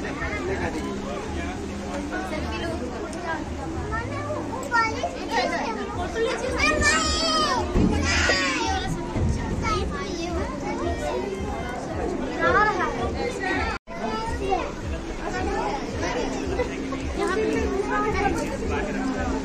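A crowd of men, women and children chatters all around, echoing in an enclosed space.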